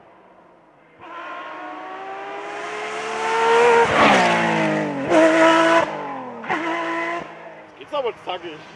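A sports car engine revs hard and crackles as the car climbs a road.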